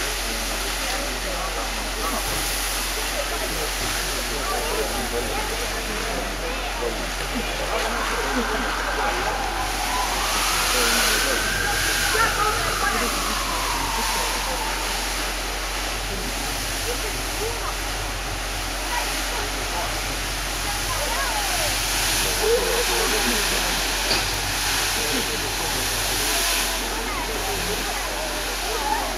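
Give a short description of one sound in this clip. A burning transformer roars and hisses steadily, swelling now and then.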